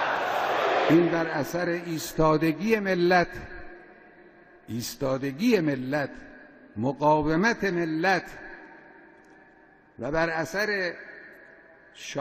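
An elderly man speaks calmly into a microphone, amplified with echo.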